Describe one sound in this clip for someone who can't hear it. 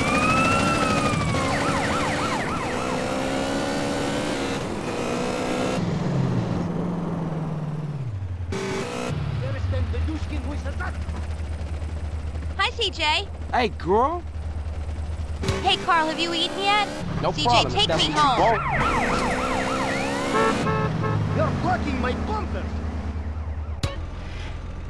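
A motorbike engine hums and revs up and down.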